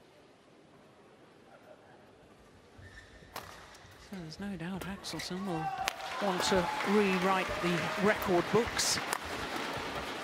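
A racket strikes a shuttlecock with sharp smacks.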